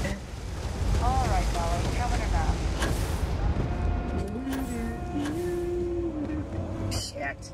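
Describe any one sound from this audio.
A young woman talks calmly into a microphone.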